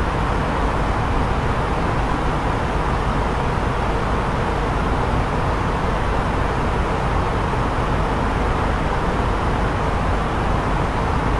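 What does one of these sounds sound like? A jet airliner's engines and rushing air roar steadily.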